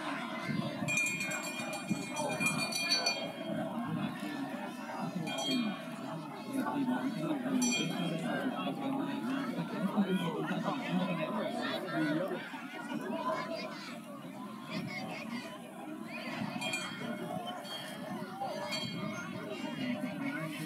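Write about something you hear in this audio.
A crowd of people chatters and calls out across an open outdoor field.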